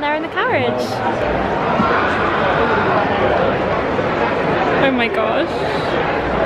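A large outdoor crowd murmurs and chatters steadily.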